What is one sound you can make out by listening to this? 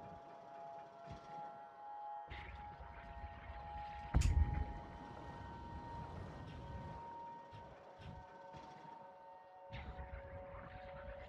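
A small flying machine hums with a steady whir.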